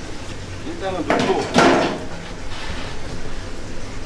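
Liquid drips and splashes onto a heap of noodles.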